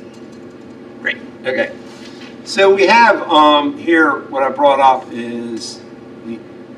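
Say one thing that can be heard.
An elderly man speaks nearby.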